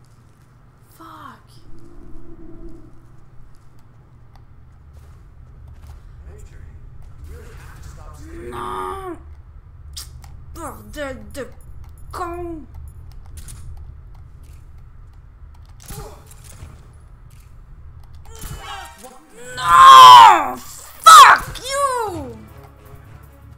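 A young woman talks and exclaims loudly with animation, close to a microphone.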